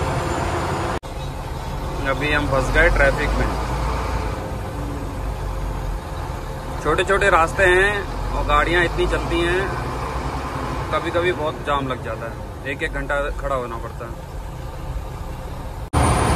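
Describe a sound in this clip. A vehicle engine rumbles low and steady while driving.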